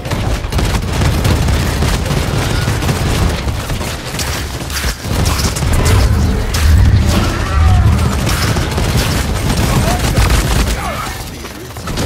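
Gunfire crackles rapidly in bursts.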